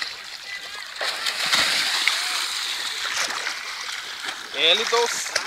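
Water splashes loudly as a young man falls back into a river.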